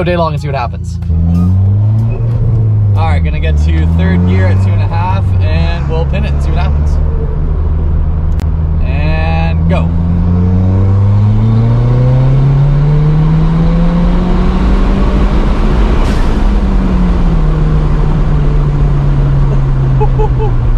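A car engine hums and revs, rising in pitch and then settling.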